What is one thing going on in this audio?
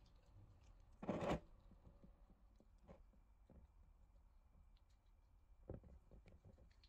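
Metal gears clink and knock against each other on a wooden surface.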